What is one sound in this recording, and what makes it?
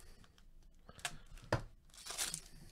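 A plastic card wrapper crinkles and rustles.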